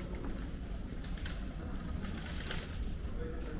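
A bicycle rolls past over cobblestones, its tyres rattling.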